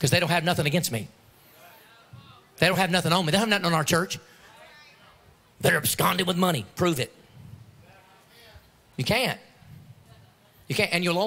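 A man speaks with animation into a microphone, heard through loudspeakers in a large hall, in bursts with pauses.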